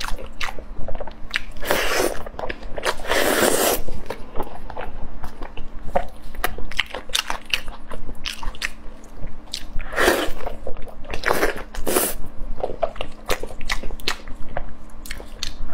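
Gloved fingers tear apart sticky meat with wet squelches.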